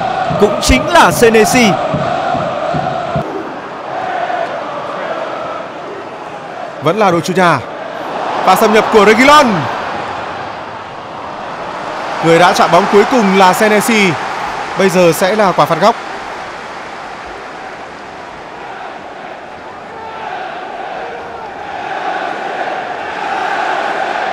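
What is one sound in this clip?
A large crowd roars and murmurs steadily in a big open stadium.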